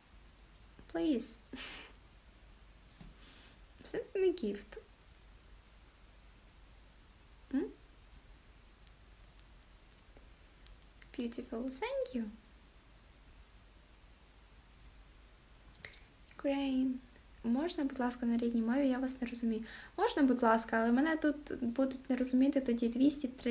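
A young woman speaks close to the microphone, in short bursts at first and then more steadily.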